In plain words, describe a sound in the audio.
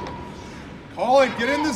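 Young male players shout across an echoing rink.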